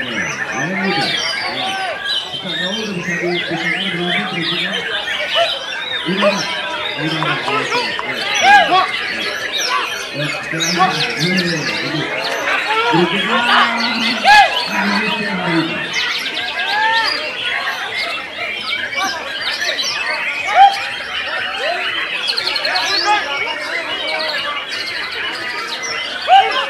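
Many other songbirds chirp and twitter all around.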